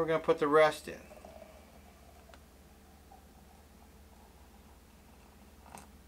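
Water pours gently from a kettle.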